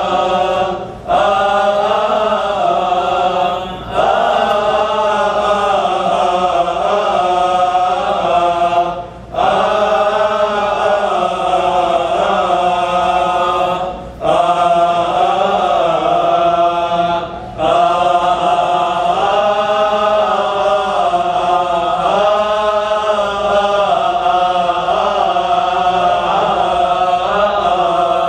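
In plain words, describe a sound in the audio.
A choir of men chants together in unison in a large echoing hall, with short pauses between phrases.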